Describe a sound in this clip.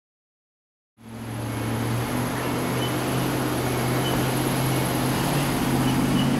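A vehicle engine hums steadily as it drives past nearby.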